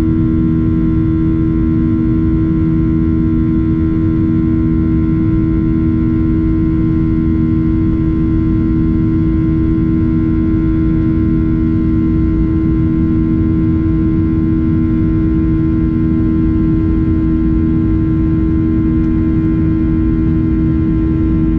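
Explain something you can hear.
A jet engine roars and hums steadily from close by.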